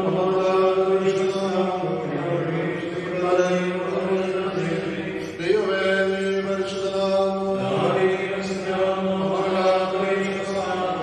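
A group of men and women sing a slow hymn together.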